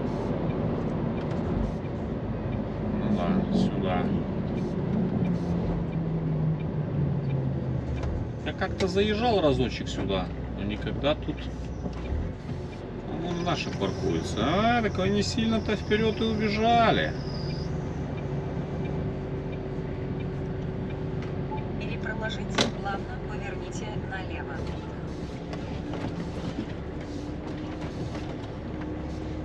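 A vehicle engine hums from inside the cab as it drives and slows down.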